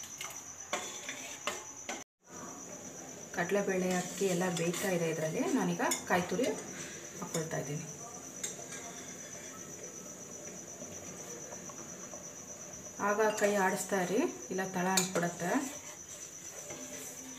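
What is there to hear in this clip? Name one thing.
A metal ladle scrapes and clinks against a pot while stirring.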